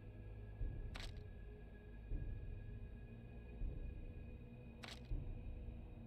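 Soft clicks sound now and then.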